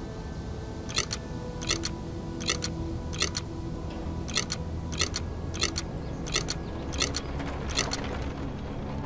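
A combination dial clicks as it turns.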